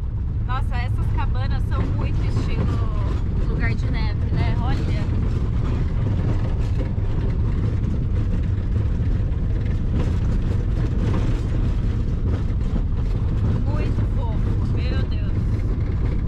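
A van engine rumbles steadily while driving.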